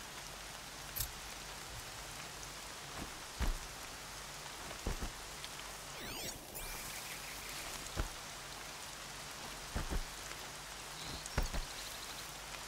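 Footsteps crunch on rough ground at a steady running pace.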